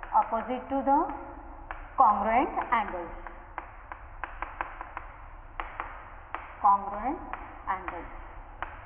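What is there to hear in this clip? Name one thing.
A woman speaks calmly into a microphone, explaining.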